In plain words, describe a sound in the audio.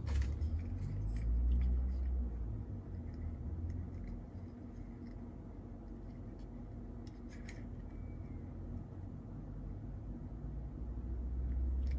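Small plastic toy pieces click and tap together.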